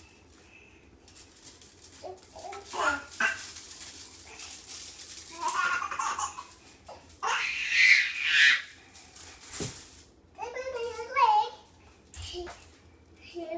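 Plastic toys rattle and clatter on the floor.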